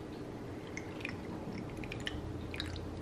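Ice cubes crackle and clink in a glass.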